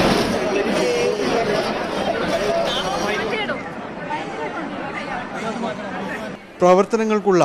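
A crowd of young women chatters and laughs close by.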